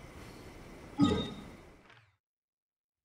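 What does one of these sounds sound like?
A game map opens with a soft whoosh.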